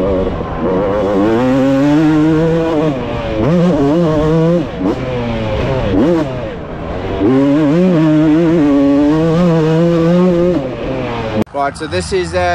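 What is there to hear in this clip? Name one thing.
A two-stroke motorbike engine screams and revs up and down at close range.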